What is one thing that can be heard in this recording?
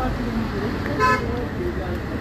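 A car horn honks briefly.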